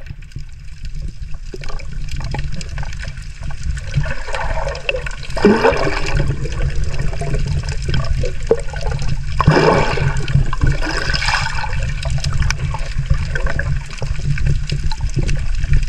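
Water rumbles and sloshes steadily, heard from underwater.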